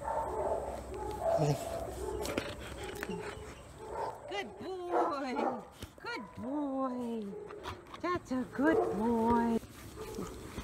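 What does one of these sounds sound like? A dog whines and whimpers up close.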